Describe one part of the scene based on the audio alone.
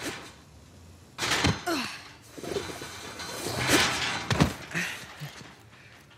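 Footsteps scuff on pavement.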